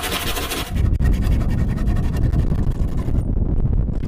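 A hand saw cuts through wood with quick strokes.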